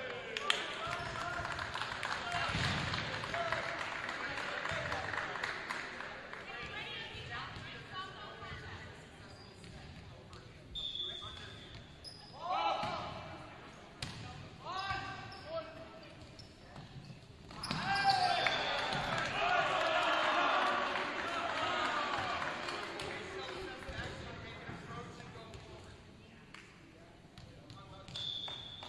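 A volleyball is struck with a thud.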